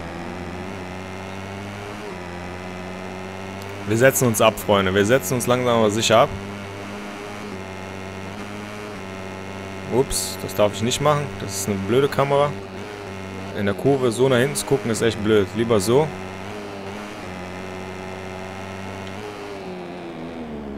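A motorcycle engine drones steadily at high revs.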